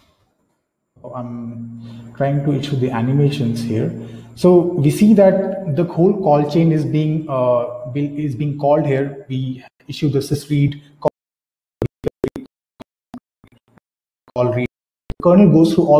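A man speaks calmly into a microphone in an online call.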